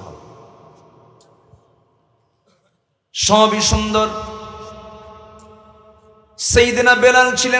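A man chants loudly in a drawn-out, sustained voice through a loudspeaker, echoing as each phrase fades.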